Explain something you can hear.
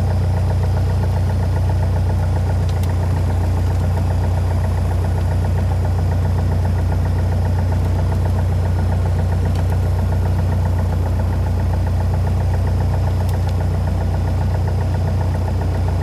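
A small propeller plane's engine drones loudly and steadily close by.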